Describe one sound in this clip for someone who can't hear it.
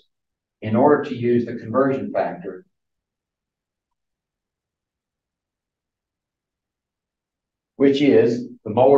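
A man lectures, speaking in short phrases.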